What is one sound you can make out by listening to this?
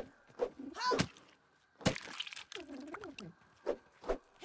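An axe strikes something with sharp knocks.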